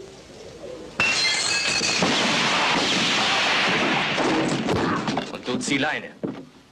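Gunshots crack loudly indoors.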